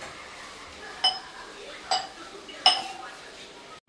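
Metal utensils clink against cooking pots.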